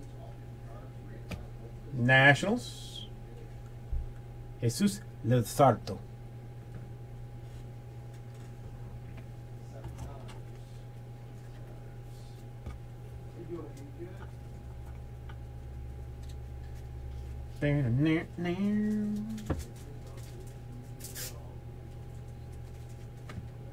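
Trading cards rustle and flick as they are handled and shuffled.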